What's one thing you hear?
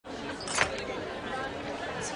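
Glasses clink on a tray.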